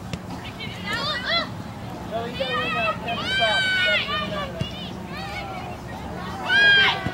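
Young women shout and cheer nearby, outdoors.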